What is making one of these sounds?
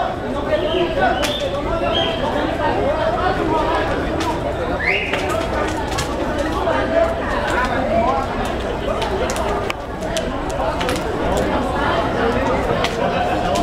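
Flames from a burning car crackle and pop outdoors.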